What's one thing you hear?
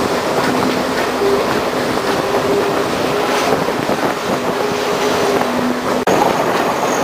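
Train wheels squeal steadily on the rails.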